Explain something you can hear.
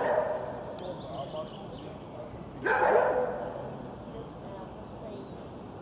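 A dog pants nearby.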